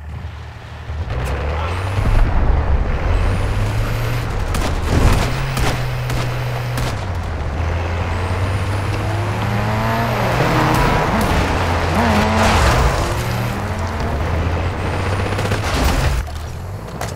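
A heavy armoured truck engine rumbles and revs as the vehicle drives.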